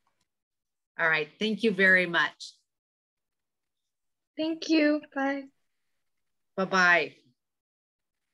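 A woman speaks warmly over an online call.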